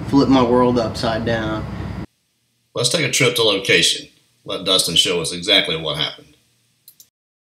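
A man talks calmly nearby, with short pauses.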